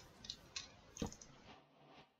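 A block is placed with a soft thud.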